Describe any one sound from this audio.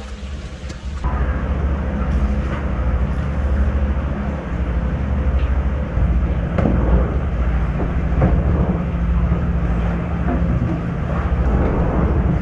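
Water sprays from a hose onto a wooden board.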